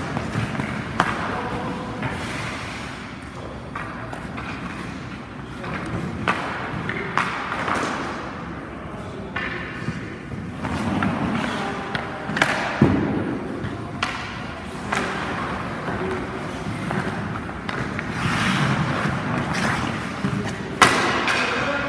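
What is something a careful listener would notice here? A hockey stick strikes a puck with a sharp crack.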